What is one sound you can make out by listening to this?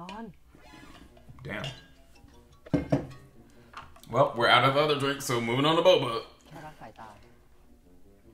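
A young man sips a drink loudly through a straw.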